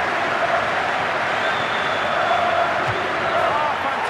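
A football is kicked with a thud.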